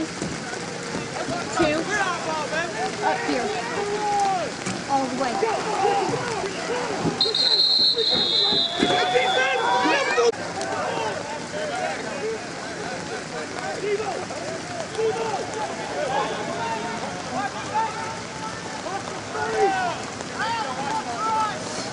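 A crowd of people shout and cheer outdoors.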